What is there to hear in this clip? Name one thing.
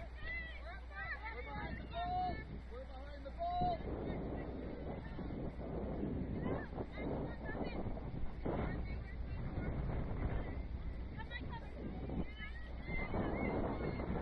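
Young female players shout and call to each other across an open outdoor field.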